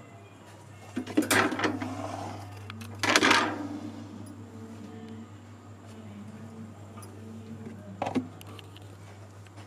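Plastic containers clatter as they are set down.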